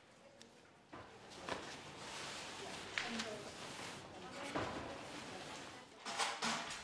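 A cloth drape rustles as it is smoothed and folded.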